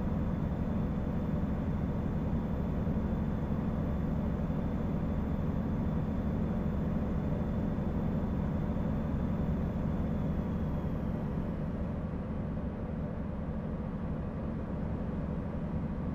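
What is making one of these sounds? A truck engine hums steadily while driving along a highway.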